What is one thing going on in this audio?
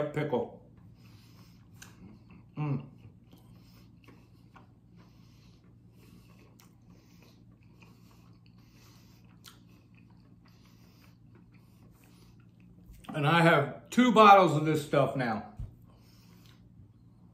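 A man crunches on fried food while chewing.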